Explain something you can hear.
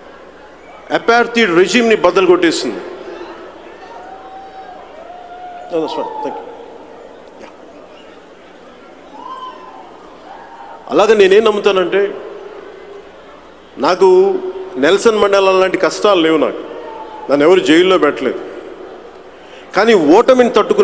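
A man speaks forcefully into a microphone over loudspeakers, in bursts with pauses, in a large echoing hall.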